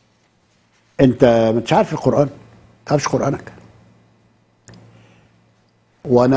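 An elderly man speaks slowly and earnestly into a microphone, in short bursts with pauses.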